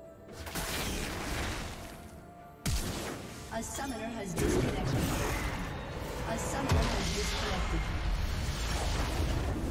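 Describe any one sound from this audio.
Game spell effects crackle and boom in a fight.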